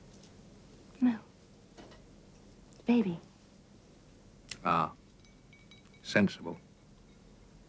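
A man speaks quietly and close by, in short phrases.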